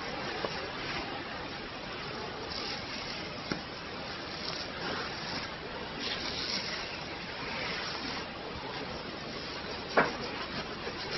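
Fingers rub and scratch through hair close up, with a steady rustling.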